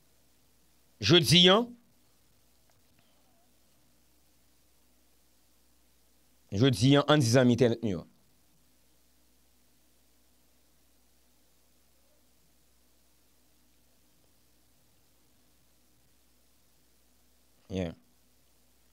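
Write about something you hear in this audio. A man speaks briefly and calmly into a close microphone, with long pauses.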